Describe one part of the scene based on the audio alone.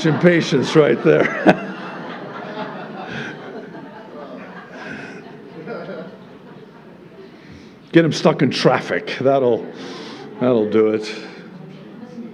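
A middle-aged man speaks with animation through a microphone in a reverberant hall.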